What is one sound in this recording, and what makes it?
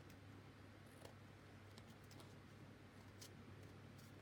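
Scissors snip through thick paper.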